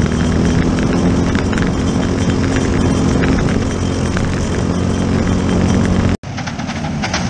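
A small racing engine roars close by at high revs.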